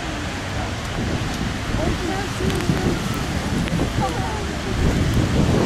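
A car drives past with tyres hissing on the wet road.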